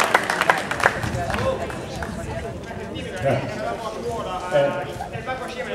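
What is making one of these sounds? A crowd of people chatter and murmur.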